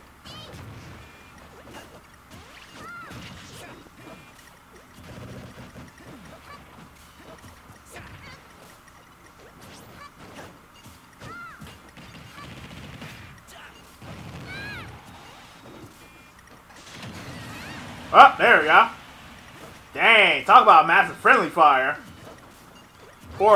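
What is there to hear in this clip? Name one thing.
Video game fighters trade punches and blasts with sharp hit sounds.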